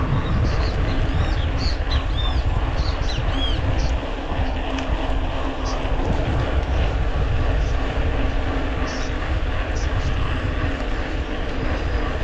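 Bicycle tyres roll and hum steadily on a paved road.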